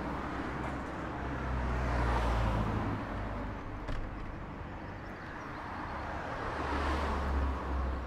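A car drives past close by on a street.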